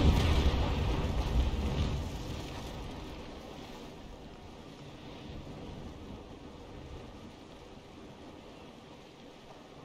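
Waves wash against a ship's hull.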